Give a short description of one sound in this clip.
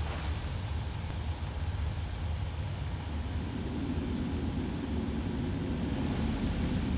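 A machine hums with a steady low drone.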